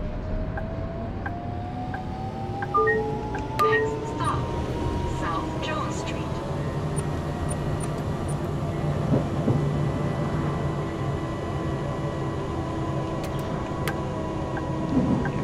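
A tram's electric motor whines, rising in pitch as it picks up speed.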